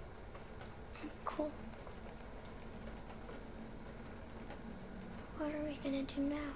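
A young girl speaks weakly and shakily.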